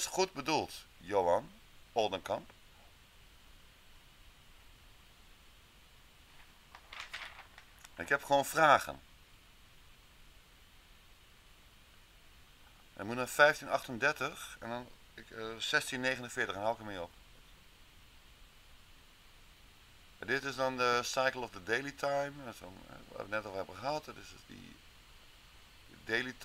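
A man speaks calmly through a microphone, in bursts with pauses.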